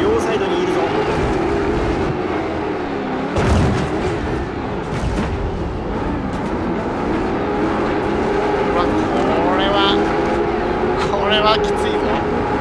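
A race car engine roars and revs steadily, rising and falling in pitch.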